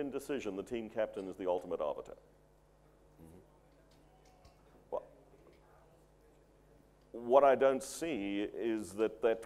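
An older man speaks calmly into a microphone, pausing between phrases.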